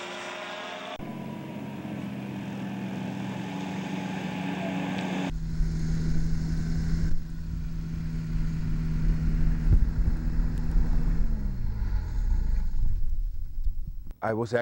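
A small aircraft engine drones loudly with a buzzing propeller.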